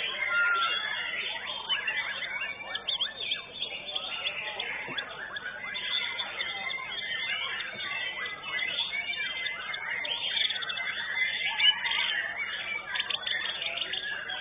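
Many caged songbirds chirp and trill loudly all around.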